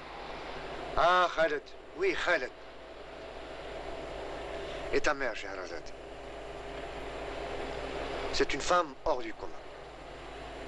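A young man speaks softly and calmly.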